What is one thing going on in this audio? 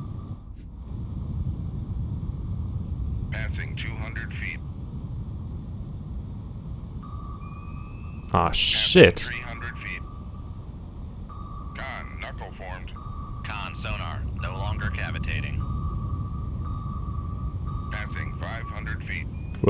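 Air bubbles rush and gurgle from a sinking submarine.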